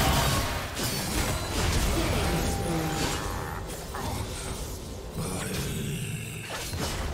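Fantasy game spells crackle and boom during a battle.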